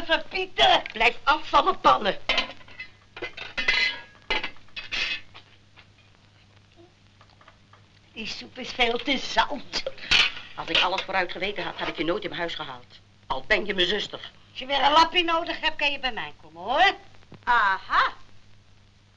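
Middle-aged women talk with animation.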